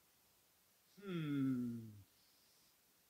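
A man makes a short wondering hum.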